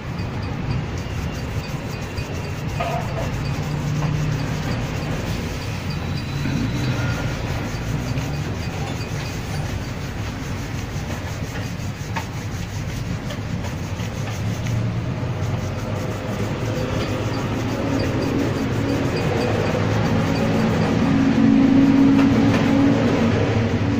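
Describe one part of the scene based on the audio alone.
A brush scrubs briskly against a leather shoe.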